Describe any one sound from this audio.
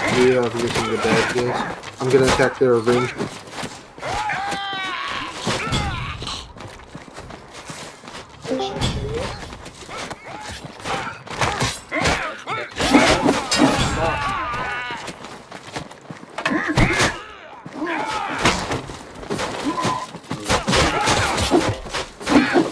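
Blades clash and strike in quick, repeated blows.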